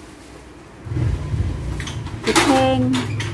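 A hand truck rolls and rumbles over a hard floor.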